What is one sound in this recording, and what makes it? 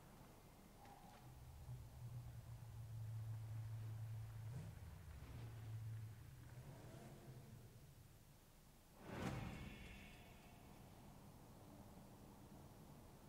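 A fire crackles.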